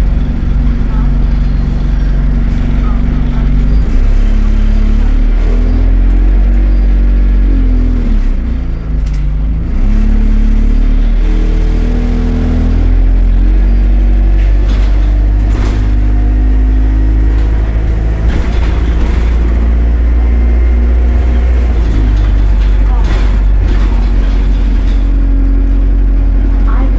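Loose fittings rattle and clatter as the bus moves.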